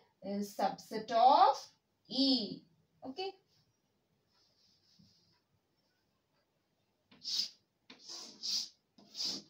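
A young woman speaks calmly and clearly, as if teaching, close by.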